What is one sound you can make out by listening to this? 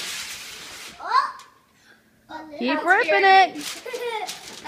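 Young children squeal and shout with excitement.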